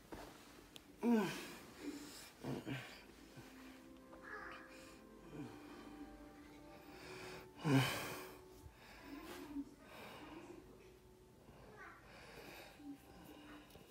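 A young man groans and mumbles sleepily close by.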